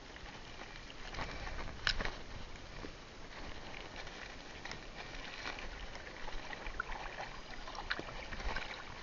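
Water gurgles and crackles close by, heard from underwater.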